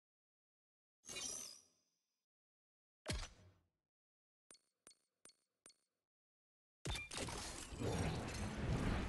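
Game menu sounds chime and click.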